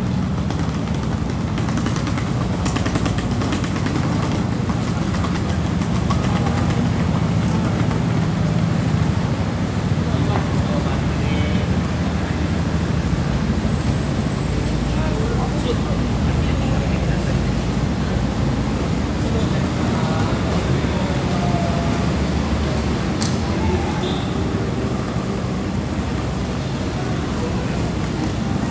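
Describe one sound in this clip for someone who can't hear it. Suitcase wheels rattle along a paved walkway.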